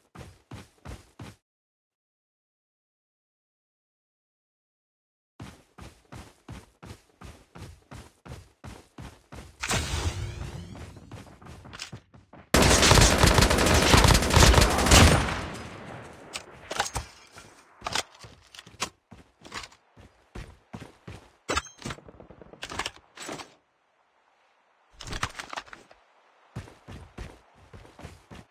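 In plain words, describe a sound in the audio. Footsteps thud at a steady pace on grass.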